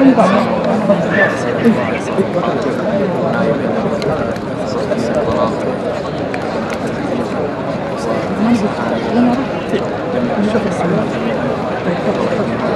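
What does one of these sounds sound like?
A man speaks steadily into a microphone, heard over a loudspeaker.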